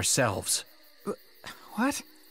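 A young man exclaims in surprise.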